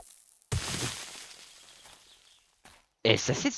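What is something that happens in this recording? A stone axe thuds into earth and gravel crunches.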